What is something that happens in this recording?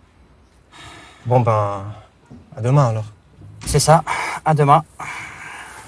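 A middle-aged man answers calmly.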